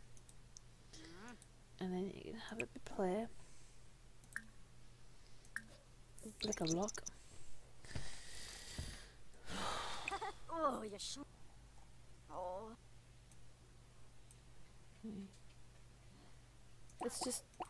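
A young woman talks casually into a microphone, in short bursts.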